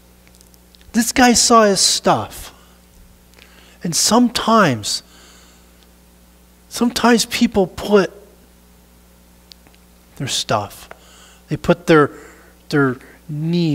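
A middle-aged man speaks with animation in short bursts, in a room with some echo.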